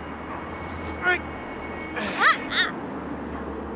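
A young woman squeals in alarm.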